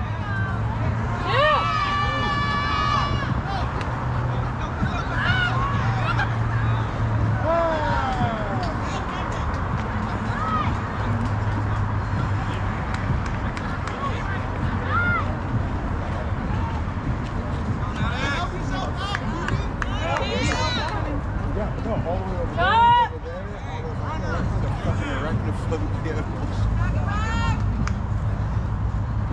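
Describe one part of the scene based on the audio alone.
Players call out and shout across an open field at a distance.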